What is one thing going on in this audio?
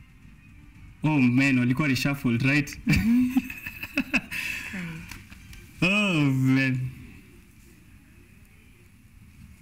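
A young man laughs through a microphone.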